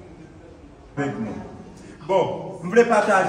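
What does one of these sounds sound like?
An elderly man speaks loudly nearby.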